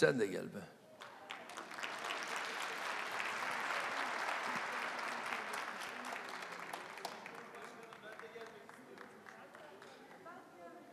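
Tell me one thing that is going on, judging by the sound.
A large crowd applauds in an echoing hall.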